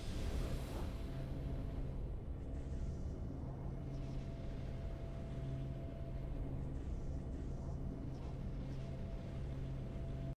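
A calm victory tune plays with a low steady hum.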